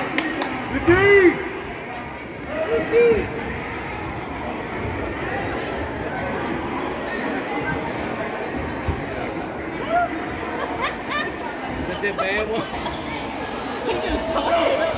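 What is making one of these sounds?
Voices of players and spectators murmur in a large echoing gym.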